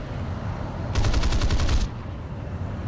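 Machine guns fire a short rapid burst.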